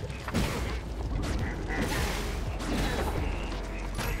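Game combat effects clash and crackle.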